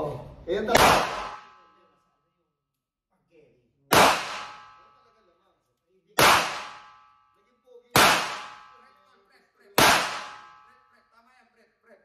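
A pistol fires single shots one at a time, each ringing out with a sharp echo in an enclosed room.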